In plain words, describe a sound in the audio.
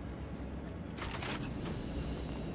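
A metal door clicks and swings open.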